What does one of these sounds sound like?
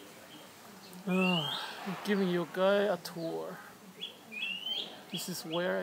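A man speaks close by, calmly and slowly.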